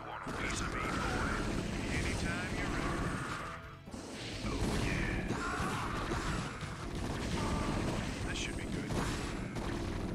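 Flamethrowers roar in bursts.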